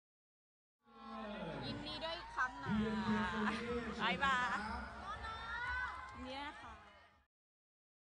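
Young women chatter and shriek excitedly close by.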